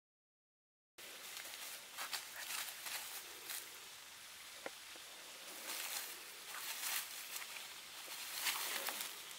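A puppy runs through tall grass, rustling and crackling the stalks.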